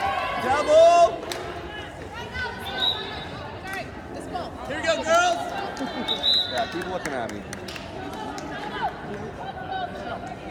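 A volleyball thuds off hands and arms.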